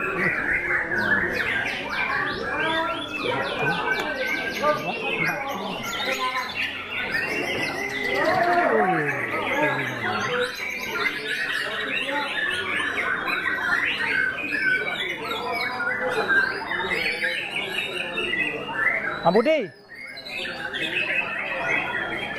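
A songbird sings loud, fast, varied trills and whistles close by.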